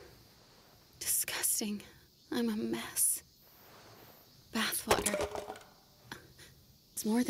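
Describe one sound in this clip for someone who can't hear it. A young woman speaks weakly and breathlessly, close by.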